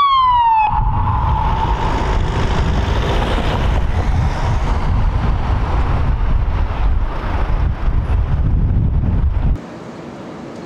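A car engine rumbles loudly as it pulls away.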